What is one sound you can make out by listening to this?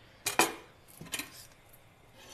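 A knife chops on a cutting board.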